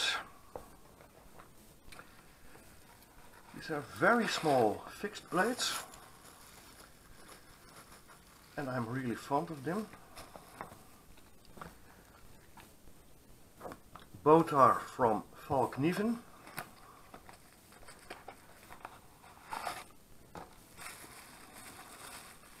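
A cardboard box rustles and taps as hands handle it.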